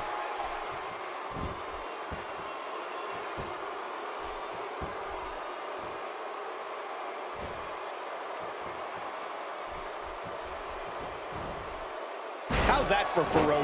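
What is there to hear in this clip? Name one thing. Bodies thud heavily onto a wrestling mat.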